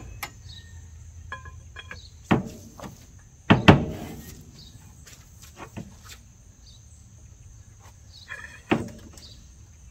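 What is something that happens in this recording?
Metal clanks and knocks against an engine.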